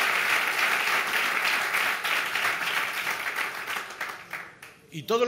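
A crowd applauds loudly, then the applause fades.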